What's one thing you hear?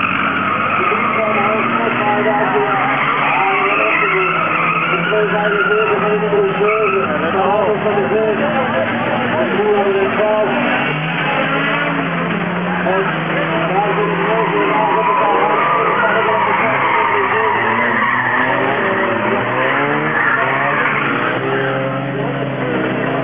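Racing car engines rev and roar around a track, rising and falling in pitch.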